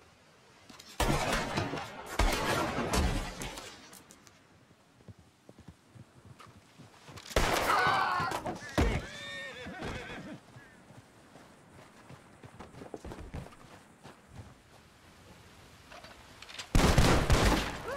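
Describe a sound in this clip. Pistol shots ring out loudly.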